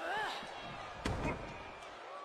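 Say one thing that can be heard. A body slams hard onto the floor.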